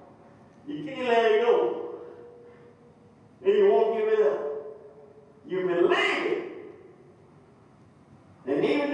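An elderly man preaches loudly and with animation through a microphone, in short bursts with pauses.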